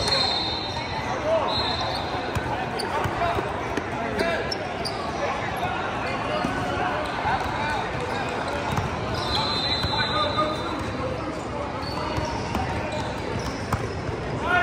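A crowd of young people chatters throughout a large echoing gym.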